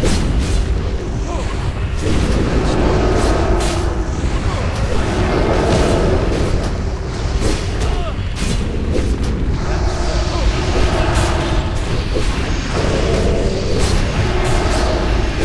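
Weapons clash with sharp metallic hits.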